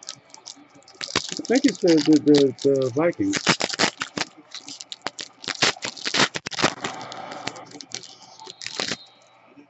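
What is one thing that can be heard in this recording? Plastic wrappers crinkle and rustle as hands handle them.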